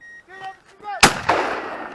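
A gunshot cracks loudly nearby and echoes away.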